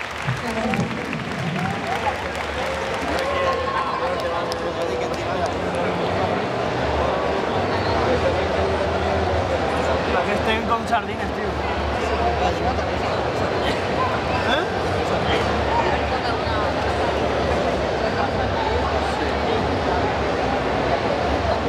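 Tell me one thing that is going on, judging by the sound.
Keyboard music plays through loudspeakers.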